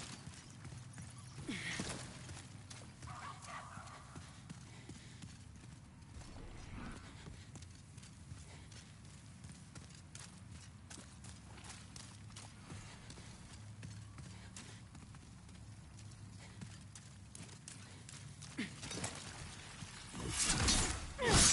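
Armored footsteps clank on a stone floor.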